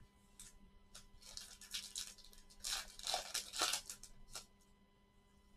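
Plastic wrapping crinkles loudly as it is torn open.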